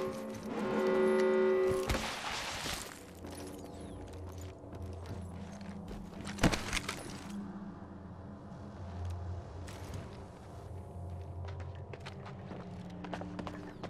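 Footsteps run across metal and ground.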